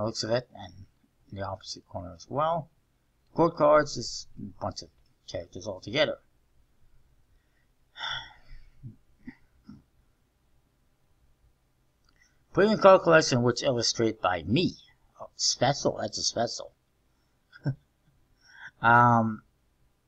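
A man talks calmly and close into a microphone, with pauses.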